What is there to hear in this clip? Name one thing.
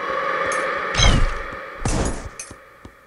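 A magic blast bursts with a whoosh.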